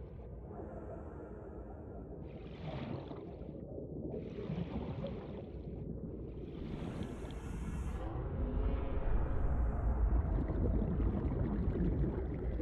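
Water swirls and bubbles in a low, steady rush.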